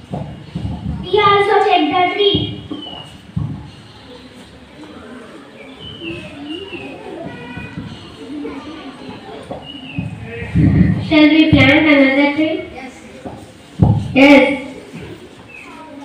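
Young boys speak and shout loudly nearby.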